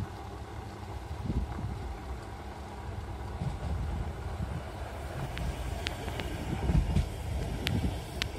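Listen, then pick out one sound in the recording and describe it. A funicular train rolls along rails, approaching and passing close by.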